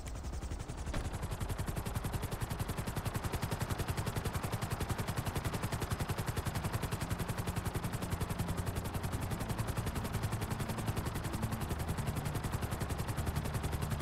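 A helicopter's rotor chops loudly and steadily as it takes off and flies.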